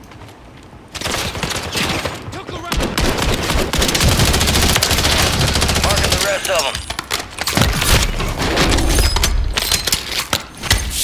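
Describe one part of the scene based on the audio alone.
Rapid gunfire rattles loudly in bursts.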